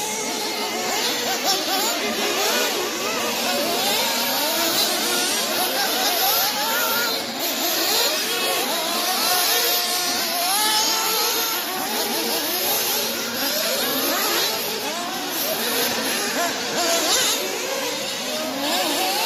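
Several nitro-powered 1/8-scale off-road buggies race, their small engines revving up and down.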